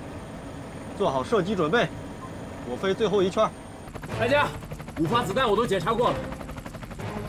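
A man speaks calmly through a headset radio.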